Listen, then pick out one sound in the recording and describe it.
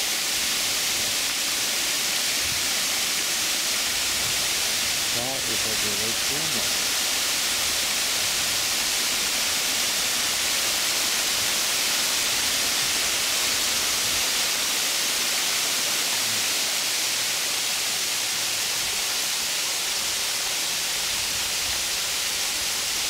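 A waterfall rushes and splashes over rock ledges.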